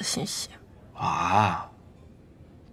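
A young man answers with surprise.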